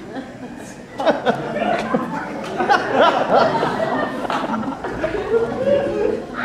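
An audience laughs loudly in an echoing hall.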